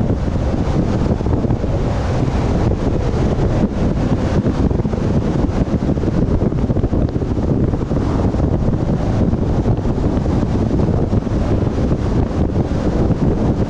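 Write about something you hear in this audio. Wind buffets loudly and steadily, rumbling low.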